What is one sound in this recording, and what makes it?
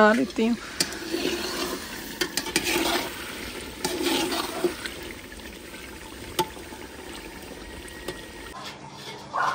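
A metal ladle scrapes and stirs food in a metal pot.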